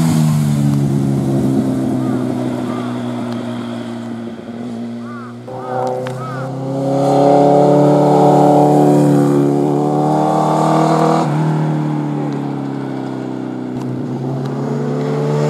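A motorcycle engine roars as a sport bike leans through bends.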